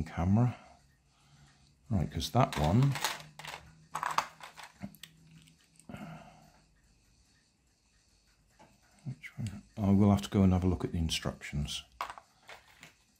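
Small metal parts click and tap together as they are handled.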